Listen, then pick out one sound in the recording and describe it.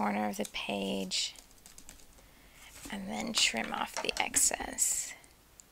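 Paper rustles as a sheet is lifted and moved.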